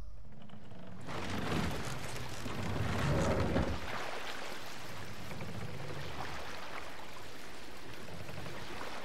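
Water splashes as a boat rows along.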